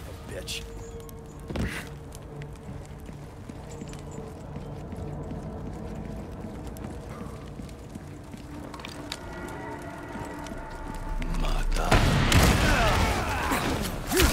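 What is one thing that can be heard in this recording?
A young man speaks in a low, tense voice.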